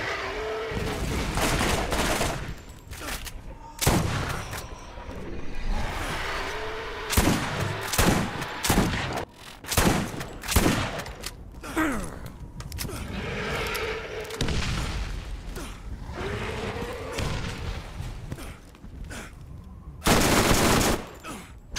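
A large beast roars and growls.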